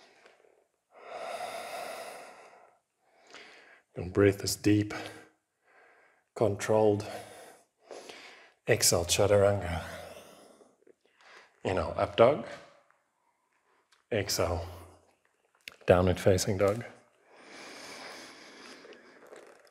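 A woman breathes out audibly.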